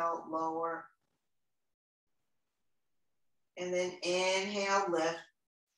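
A woman speaks calmly, close by, with a pause between phrases.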